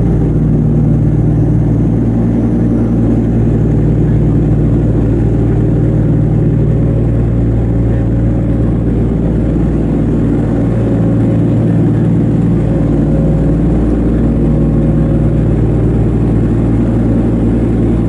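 Propeller engines drone loudly and steadily with a deep, throbbing hum.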